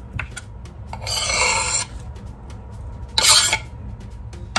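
A knife blade scrapes across a wooden cutting board.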